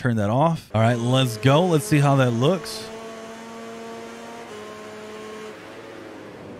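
A motorcycle engine screams as it revs up and shifts through gears.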